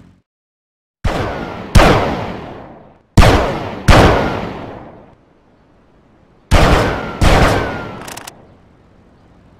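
Gunshots fire one after another and ring out.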